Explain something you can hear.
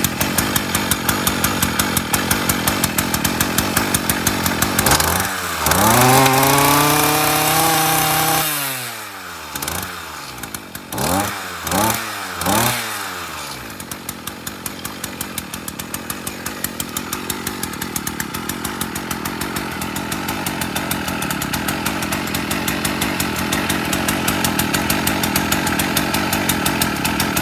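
A small two-stroke engine idles close by with a rapid, even putter.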